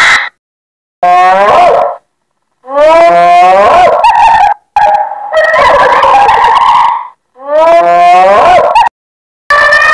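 A hyena whoops and giggles with rising and falling calls.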